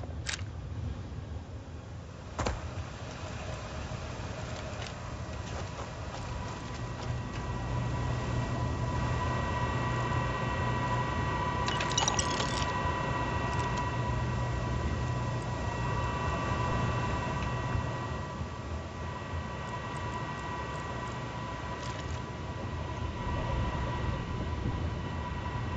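A low machinery hum drones steadily.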